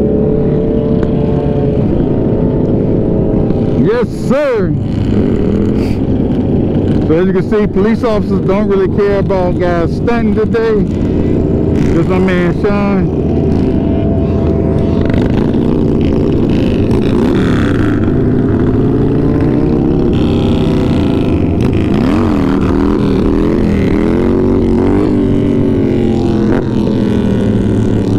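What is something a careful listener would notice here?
A motorcycle engine roars steadily close by.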